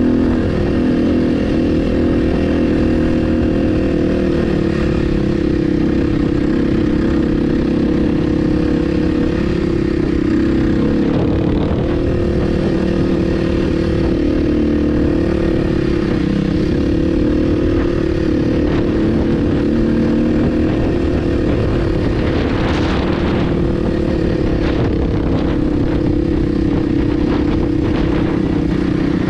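A dirt bike engine drones steadily up close.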